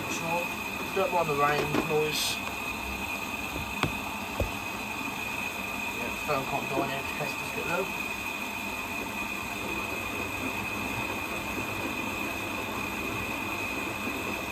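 A washing machine drum turns with a steady hum.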